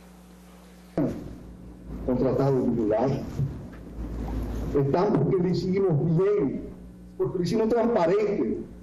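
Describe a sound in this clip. A man speaks into microphones with animation.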